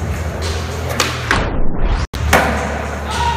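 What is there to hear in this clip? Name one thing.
A skateboard lands with a sharp clack.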